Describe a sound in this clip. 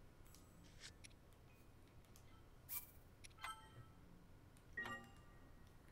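Short electronic menu chimes blip a few times.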